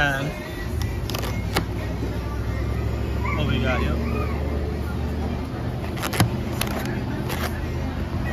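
A foam food container creaks and snaps as its lid is opened and closed.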